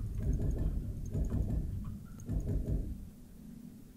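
A laser gun fires in deep, rumbling bursts.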